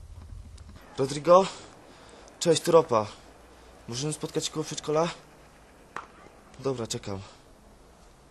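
A young man talks on a mobile phone close by.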